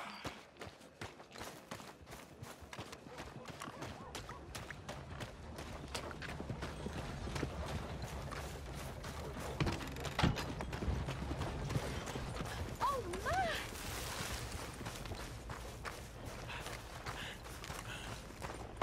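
Footsteps thud steadily on grass and dirt.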